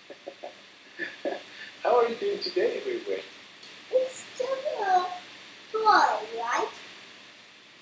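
A young man talks and laughs cheerfully over an online call.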